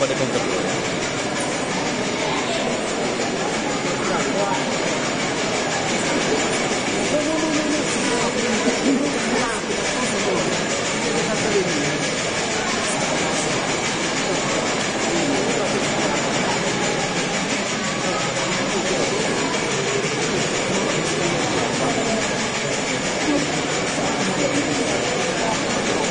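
A large crowd of men and women chatters loudly in a big echoing hall.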